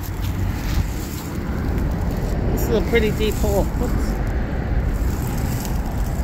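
A glove crumbles loose soil by hand.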